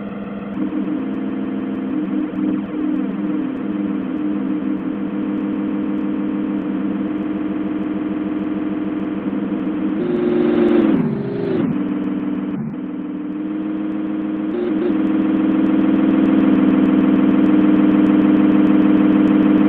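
A train engine drones steadily.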